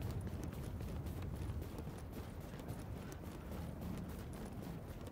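Boots crunch quickly through deep snow.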